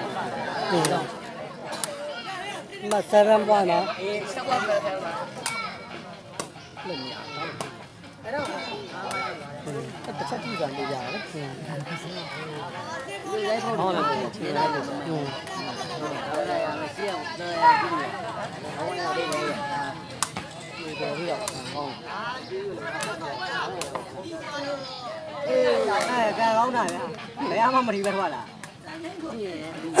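A large outdoor crowd of men chatters and calls out.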